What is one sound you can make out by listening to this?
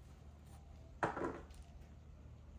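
A deck of cards is set down on a table.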